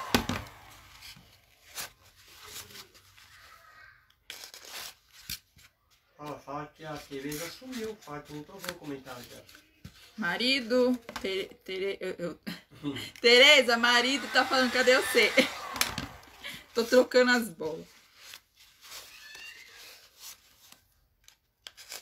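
Paper crinkles and rustles under a woman's hands.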